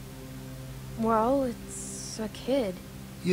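A young girl speaks quietly.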